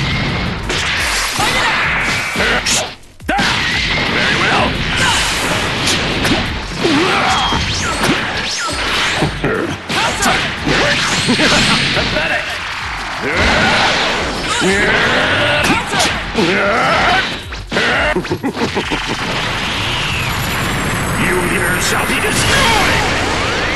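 Energy blasts whoosh and explode with loud booms.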